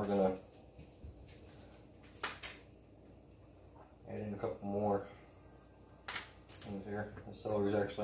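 Celery stalks snap as they are broken by hand.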